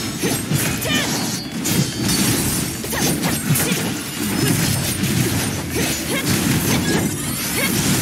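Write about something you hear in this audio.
Blades slash and clang in quick bursts.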